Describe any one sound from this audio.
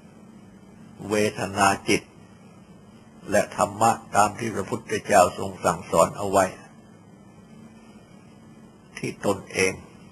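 An elderly man speaks calmly, in short phrases with pauses.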